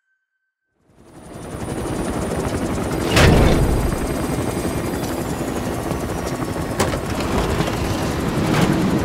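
A helicopter engine rumbles steadily close by.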